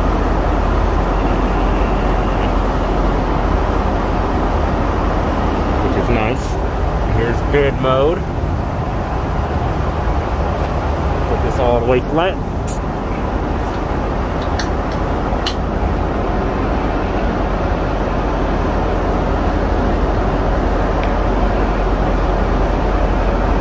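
An airplane cabin hums with a steady low roar.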